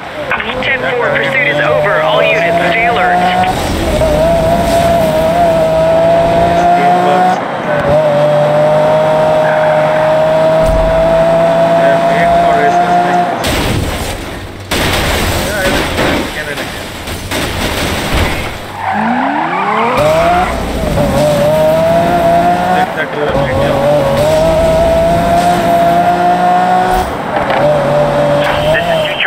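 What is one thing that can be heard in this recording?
A sports car engine roars at high revs, rising in pitch through the gears.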